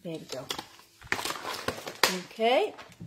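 A sheet of paper rustles close by.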